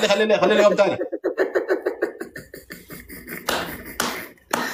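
An older man laughs over an online call.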